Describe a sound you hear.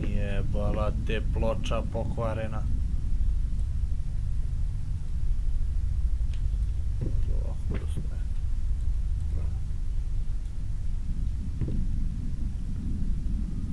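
A gramophone record crackles softly as it turns.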